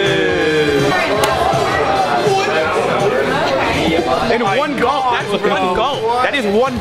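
A crowd of people chatters and cheers loudly.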